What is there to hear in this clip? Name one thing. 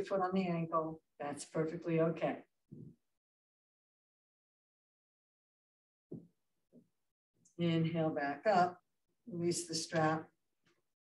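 An older woman speaks calmly and clearly, as if giving instructions, close by.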